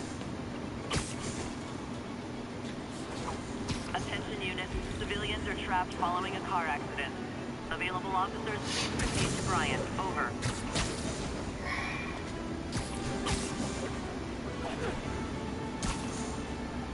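Sharp web shots snap out now and then.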